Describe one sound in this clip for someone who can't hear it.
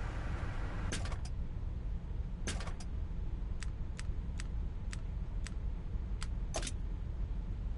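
Short game menu clicks sound as selections move through a list.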